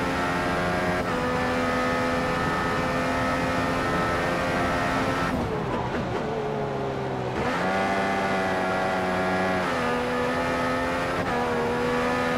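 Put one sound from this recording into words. A racing car engine snaps up a gear with a short dip in pitch.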